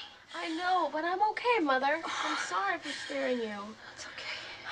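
A woman speaks emotionally, close by, her voice wavering.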